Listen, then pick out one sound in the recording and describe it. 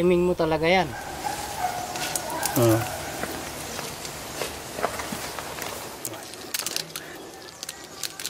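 Dry coffee beans rattle and click as a hand sifts through them.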